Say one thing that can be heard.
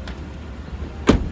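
A vehicle door thuds shut.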